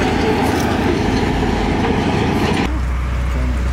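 A heavy excavator engine rumbles as its bucket digs into soil.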